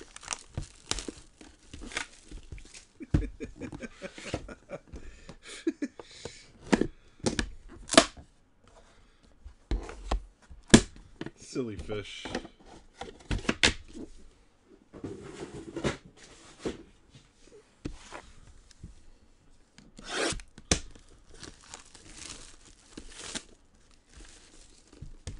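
Hands crinkle and tear plastic shrink wrap.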